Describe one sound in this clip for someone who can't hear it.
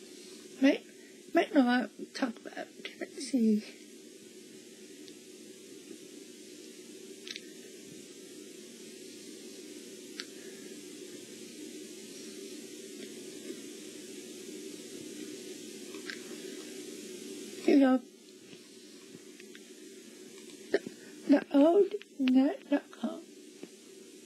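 A young girl exclaims with excitement, close by.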